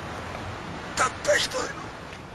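A man laughs mockingly close by.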